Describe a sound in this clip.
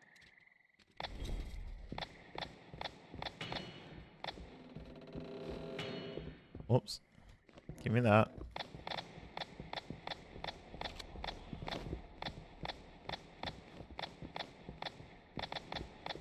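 Footsteps tread steadily on wooden boards.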